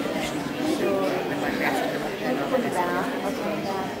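A young woman laughs and talks close by.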